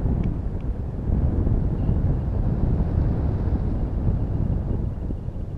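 Wind rumbles and buffets steadily against the microphone.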